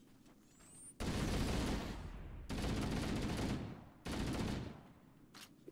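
A rifle fires in long automatic bursts.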